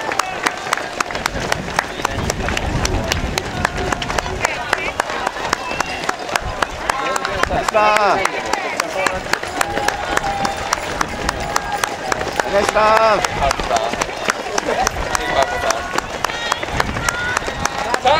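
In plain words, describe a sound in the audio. Spectators close by cheer and shout encouragement.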